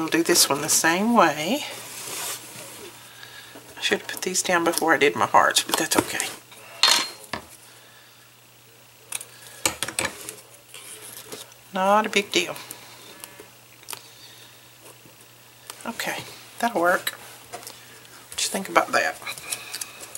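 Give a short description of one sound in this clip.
Paper card rustles and taps as hands handle it.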